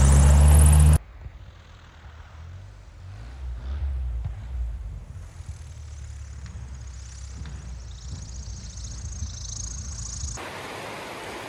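A small plane's engine drones in the distance.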